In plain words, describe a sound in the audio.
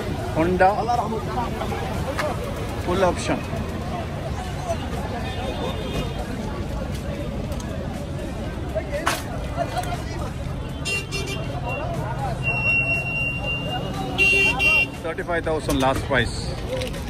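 A crowd of men talks and chatters nearby, outdoors.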